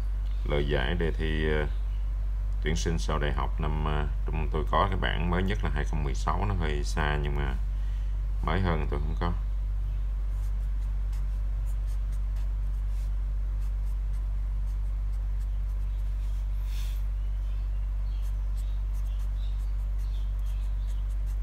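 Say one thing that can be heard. A marker pen squeaks and scratches on paper.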